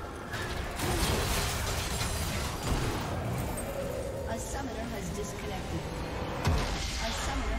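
Magical spell effects crackle and burst in a busy fight.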